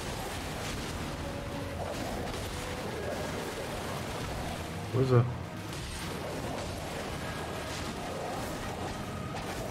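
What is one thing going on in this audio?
Wolves snarl and growl during a fight.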